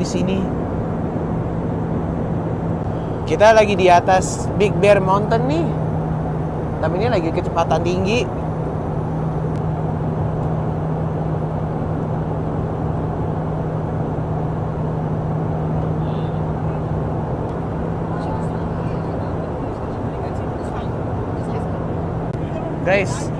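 A jet engine drones steadily inside an aircraft cabin.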